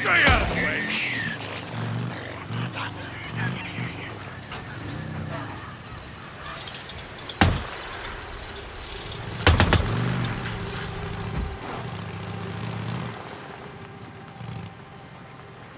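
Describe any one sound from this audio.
A motorcycle engine rumbles steadily as the bike rides along.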